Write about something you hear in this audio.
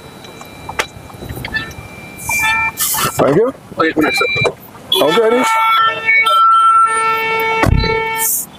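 Men talk loudly nearby.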